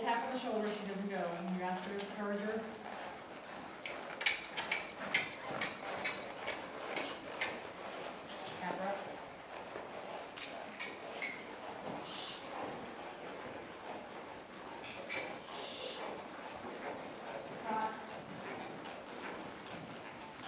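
A horse's hooves thud softly on dirt.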